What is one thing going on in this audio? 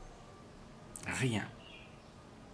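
An elderly man makes a short sound with his voice, close by.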